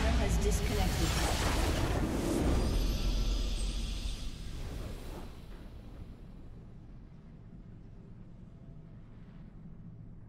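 A video game victory fanfare plays and then fades.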